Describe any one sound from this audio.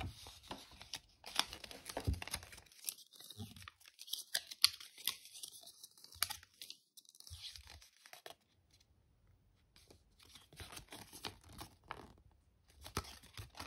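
Paper packaging crinkles and rustles in someone's hands.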